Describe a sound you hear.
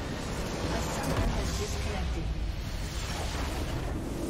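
A massive explosion roars as a structure is destroyed.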